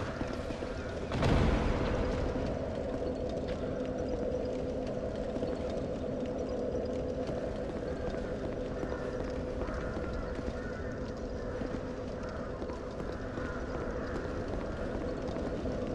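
Armoured footsteps walk on stone.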